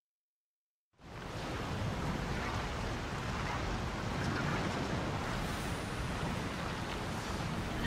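Lava bubbles and hisses.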